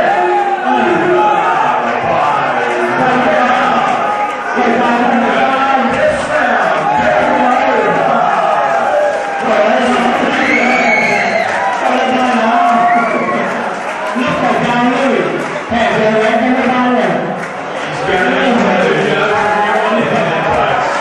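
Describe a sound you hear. A large crowd chatters and shouts loudly all around.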